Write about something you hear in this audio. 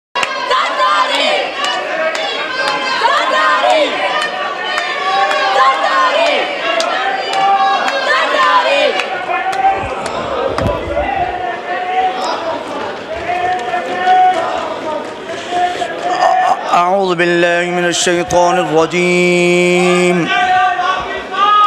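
A crowd of men shouts and chants loudly in a large echoing hall.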